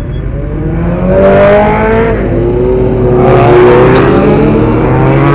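A motorcycle engine revs up loudly and rises in pitch.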